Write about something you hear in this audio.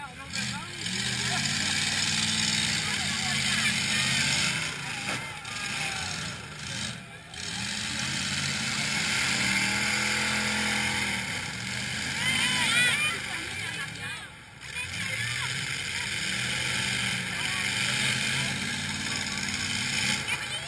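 Truck engines roar and rev loudly outdoors.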